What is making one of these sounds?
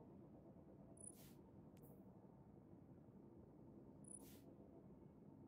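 A short menu chime sounds twice.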